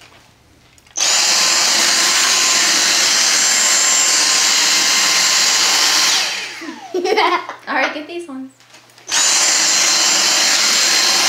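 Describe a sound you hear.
A cordless vacuum cleaner whirs loudly at a high pitch.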